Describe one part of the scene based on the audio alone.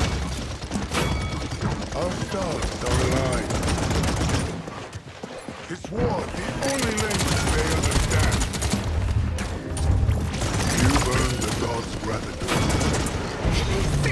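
Energy weapons fire in rapid bursts with loud blasts.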